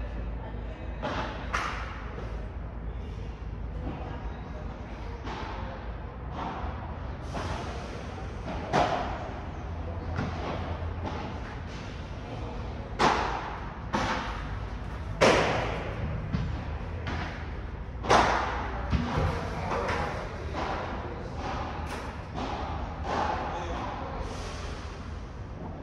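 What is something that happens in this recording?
Padel rackets strike a ball with sharp pops in a large echoing hall.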